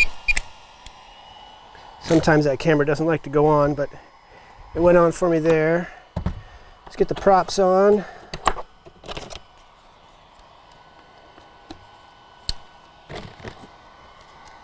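Hard plastic cases and parts click and knock as they are handled.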